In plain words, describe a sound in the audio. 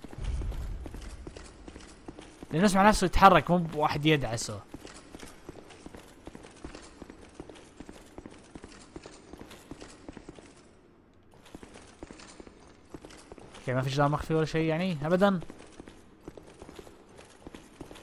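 Armoured footsteps run quickly on a stone floor.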